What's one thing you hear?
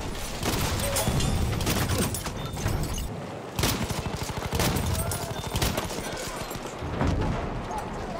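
A shotgun fires loud, sharp blasts.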